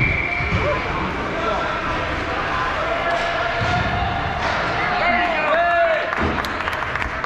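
Young players shout in a large echoing rink.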